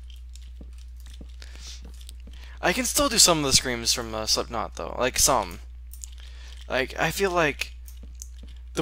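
Blocks break with soft, quick crunches.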